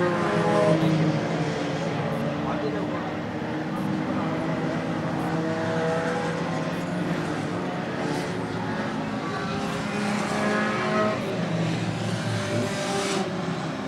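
Engines rev up and down as cars go through a bend.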